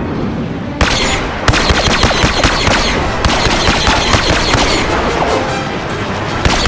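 Rapid blaster shots crack in a fast stream.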